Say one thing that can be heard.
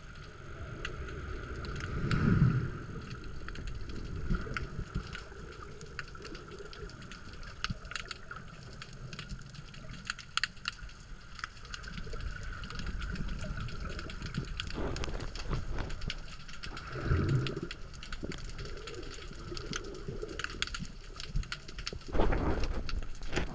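Small clicks and crackles sound steadily through the water.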